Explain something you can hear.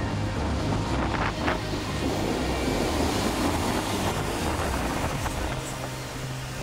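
Heavy waves crash and roar onto the shore.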